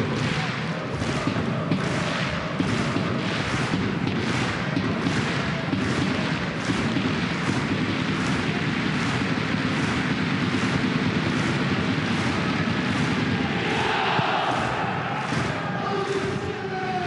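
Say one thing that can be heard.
A large crowd claps in a steady rhythm.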